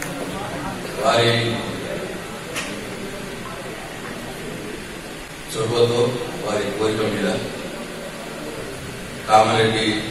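A man speaks with animation into a microphone over a loudspeaker.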